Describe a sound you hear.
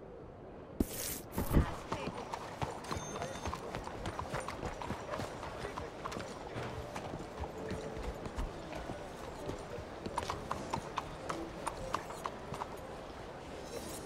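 Boots clatter on cobblestones at a steady walk.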